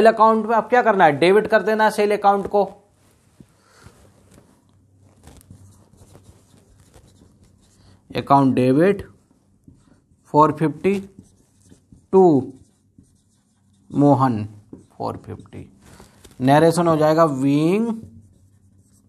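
A man speaks calmly and clearly, in short bursts, close by.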